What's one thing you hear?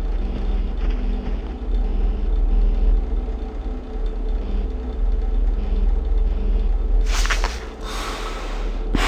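A small electric fan hums and whirs steadily.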